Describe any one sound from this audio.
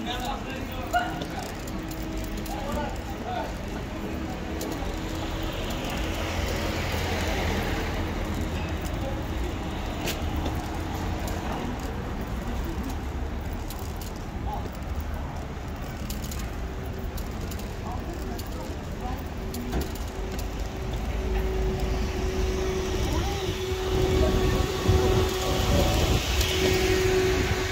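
Traffic hums along a town street outdoors.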